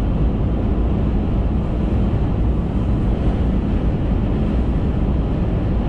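A car drives steadily along a highway, its tyres rumbling on the road.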